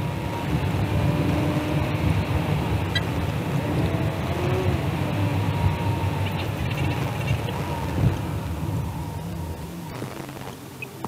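Tyres roar steadily on the road as a car drives along.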